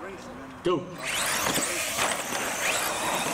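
Small electric motors whine loudly as toy cars race off.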